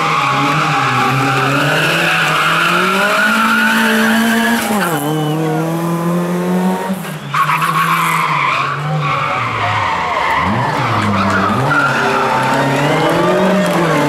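A rally car engine roars loudly, revving up and down as the car drifts around a bend.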